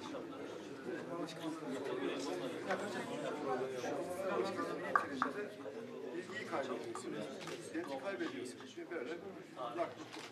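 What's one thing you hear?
A middle-aged man speaks calmly and steadily close by.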